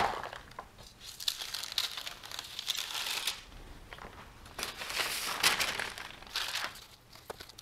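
Paper rustles as it is lifted from a metal tray.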